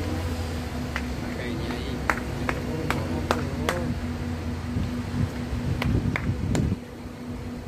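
A crowd of young men claps their hands outdoors.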